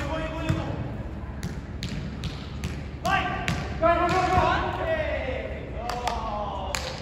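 A volleyball thumps off hands.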